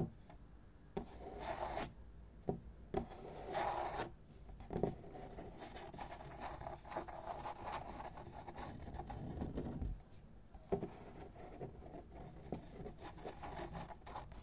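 Fingertips scratch and rub across paper.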